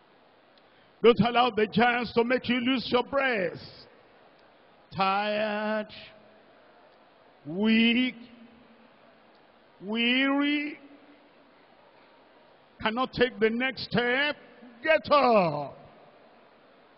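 A man prays aloud in loud, impassioned bursts, echoing through a large space.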